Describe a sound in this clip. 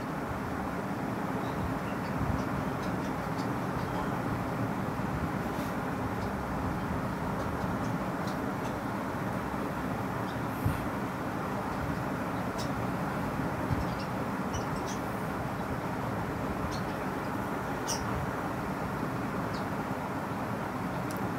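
Coins chime brightly as they are collected in a game.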